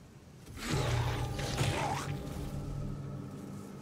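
A body bursts with a heavy, wet splatter.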